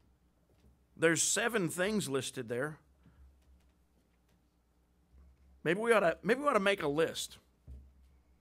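A middle-aged man speaks calmly into a microphone, in bursts with pauses, in a slightly echoing room.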